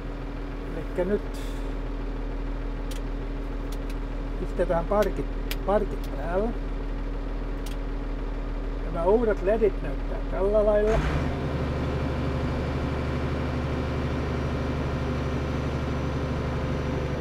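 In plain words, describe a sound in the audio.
A tractor engine drones steadily, growing louder and deeper partway through.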